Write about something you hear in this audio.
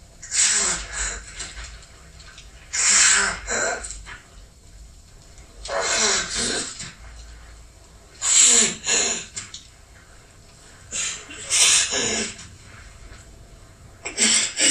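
A man gasps for breath, close by.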